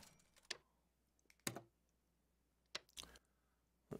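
A short interface click sounds.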